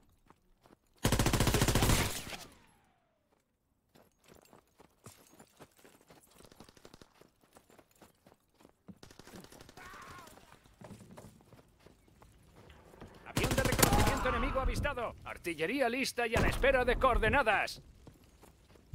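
Gunfire bursts loudly in rapid, echoing volleys.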